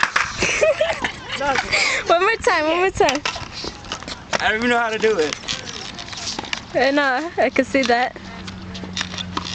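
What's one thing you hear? Skateboard wheels roll over a hard court.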